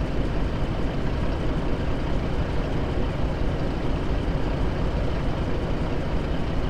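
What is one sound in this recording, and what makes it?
A diesel truck engine idles with a steady low rumble.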